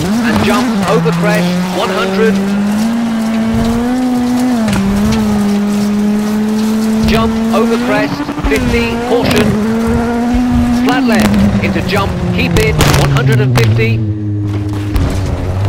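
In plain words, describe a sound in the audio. Tyres crunch and skid on gravel.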